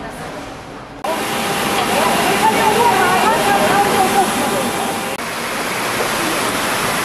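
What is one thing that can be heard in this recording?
A machine whirs steadily.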